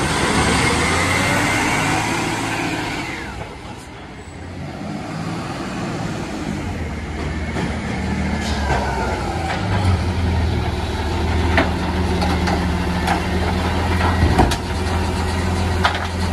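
A garbage truck's hydraulic arm whines as it lifts a bin.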